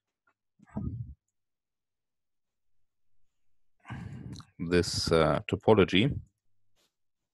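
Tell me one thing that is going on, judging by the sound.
A man speaks calmly over an online call, in short phrases.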